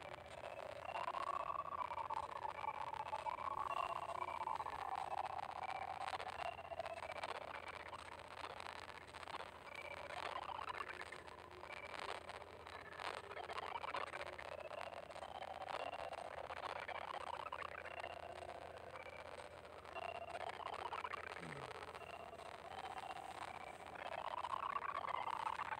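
Short electronic blips and chimes sound again and again.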